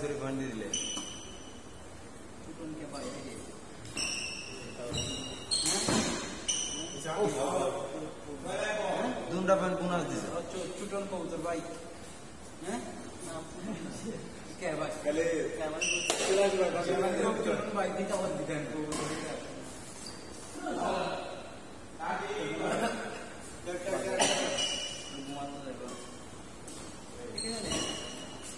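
Sports shoes squeak sharply on a hard court floor.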